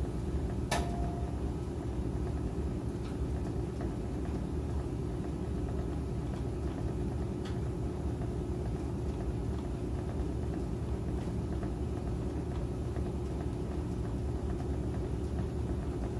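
A washing machine drum spins with a steady low rumble and hum.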